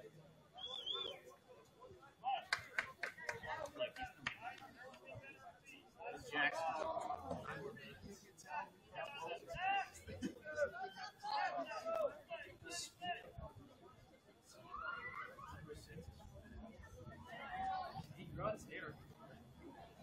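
Young players shout and call to each other across an open field, some way off.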